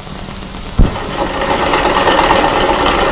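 A sewing machine whirs steadily.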